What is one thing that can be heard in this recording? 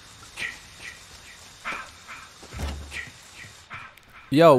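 Footsteps tread on the ground outdoors.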